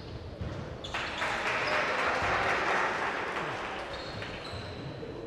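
A crowd cheers after a basket.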